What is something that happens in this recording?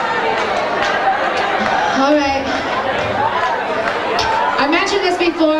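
A singer sings through loud speakers in a large echoing room.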